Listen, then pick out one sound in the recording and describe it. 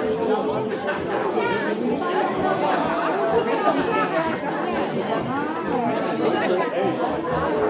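A man and a woman talk with each other up close.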